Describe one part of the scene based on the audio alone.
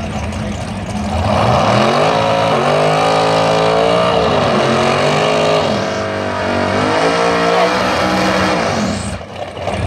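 Two drag racing cars rev their engines at the start line.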